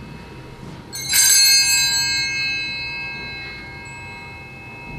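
A small bell rings brightly and its ringing slowly fades in a reverberant hall.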